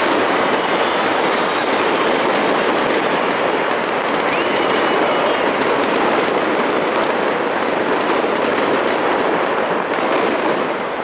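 Fireworks crackle and pop overhead.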